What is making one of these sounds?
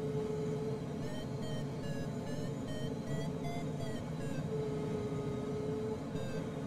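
A flight instrument beeps in short, changing tones.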